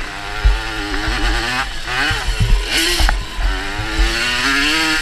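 A motocross bike engine revs loudly up close, rising and falling in pitch.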